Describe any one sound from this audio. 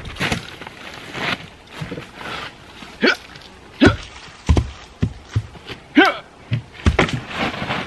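A tarp rustles as a man pulls at it.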